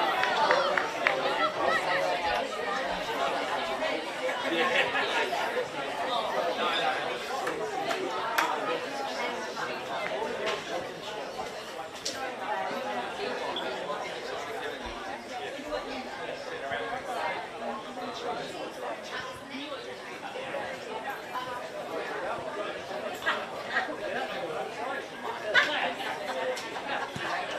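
Young players shout to each other outdoors in the distance.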